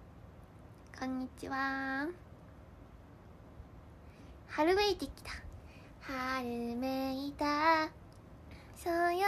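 A young woman talks brightly and playfully close to a microphone, with long drawn-out syllables.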